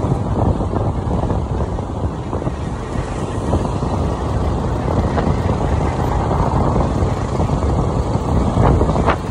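A motorcycle engine hums while riding along a road.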